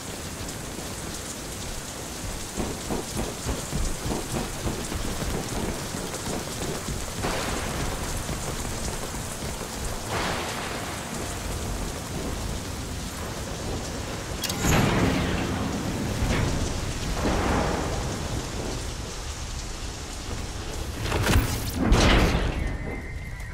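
Heavy rain pours and wind roars outdoors.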